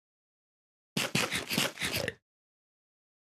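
A chicken clucks as it is struck.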